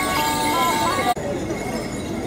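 Folk musicians play a lively, bouncy tune on a squeezebox.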